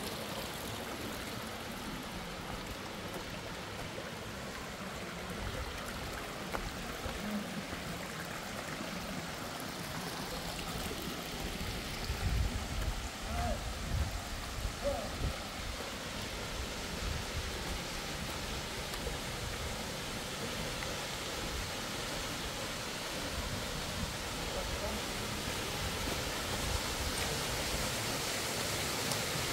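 A shallow stream trickles over stones.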